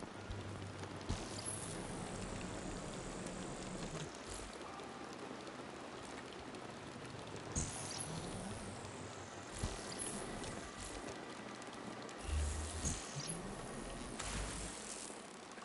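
Bursts of energy whoosh and crackle.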